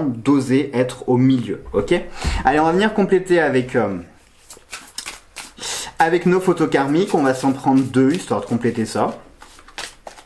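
A man talks calmly and closely into a microphone.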